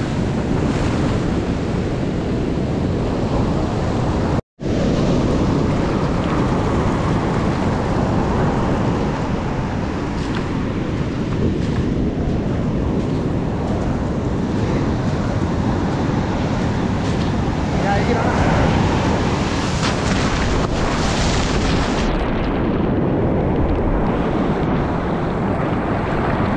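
Waves crash and roar close by.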